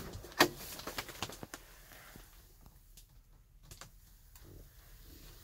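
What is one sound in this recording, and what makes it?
A small cabinet door clicks and knocks as it is handled.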